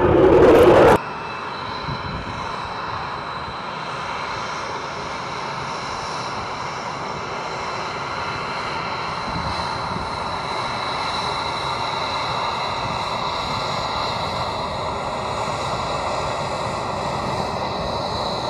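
A twin-engine jet fighter's engines whine as it taxis.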